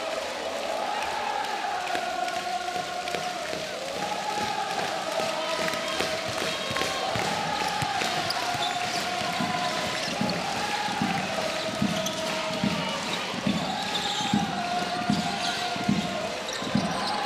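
A large crowd chants and sings together in an echoing arena.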